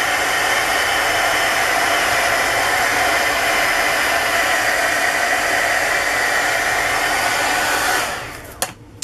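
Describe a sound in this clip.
A heat gun blows with a steady loud whoosh.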